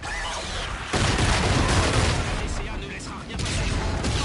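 An explosion booms nearby with a loud rumbling roar.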